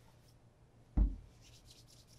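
A shoe is lifted off a table with a knock.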